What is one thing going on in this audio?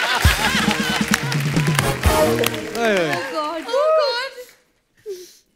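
An audience claps and laughs.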